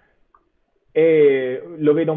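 A second man answers calmly over an online call.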